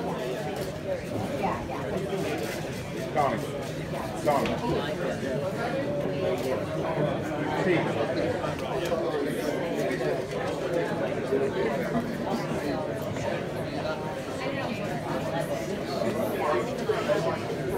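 Several men talk at once in a busy, echoing room.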